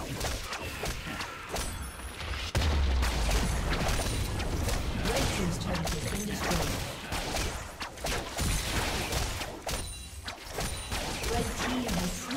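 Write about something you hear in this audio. Video game spell and hit effects crackle and clash rapidly.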